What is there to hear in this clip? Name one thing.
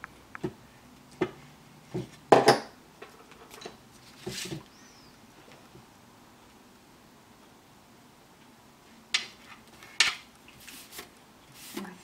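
Hands handle and tap card stock on a cutting mat.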